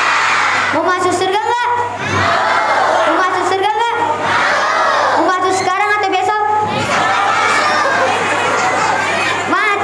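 A young boy chants melodiously into a head microphone, amplified through loudspeakers in an echoing room.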